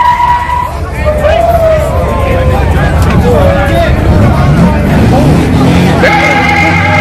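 Tyres screech as they spin on pavement.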